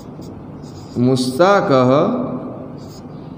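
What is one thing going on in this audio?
A man briefly says a few words loudly.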